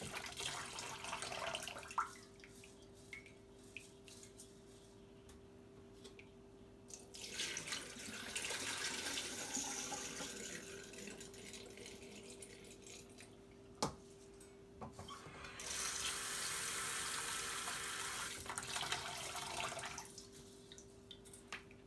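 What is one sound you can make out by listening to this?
Hands swish rice around in water.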